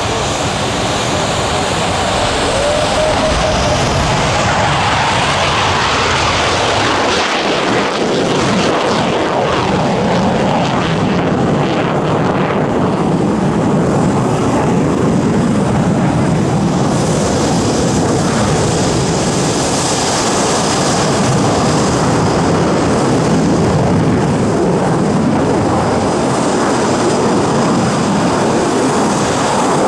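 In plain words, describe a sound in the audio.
A jet engine roars loudly as a fighter jet takes off and climbs.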